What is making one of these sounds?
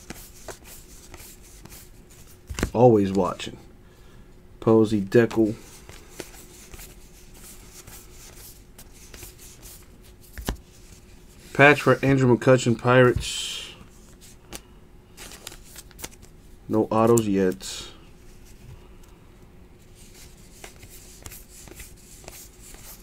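Trading cards rustle and flick softly as they are shuffled by hand.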